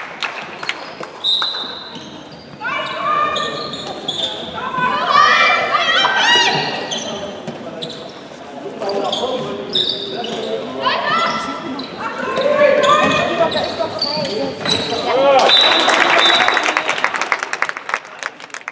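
Young women players call out to each other across the hall.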